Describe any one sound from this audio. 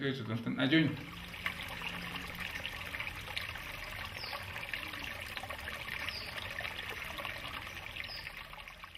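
A shallow stream trickles and babbles.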